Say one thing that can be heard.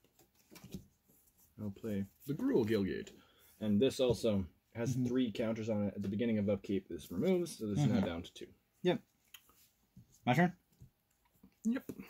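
Playing cards slide and tap softly on a cloth-covered table.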